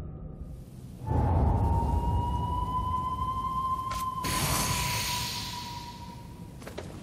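A magical charge hums and swells with a rising whoosh.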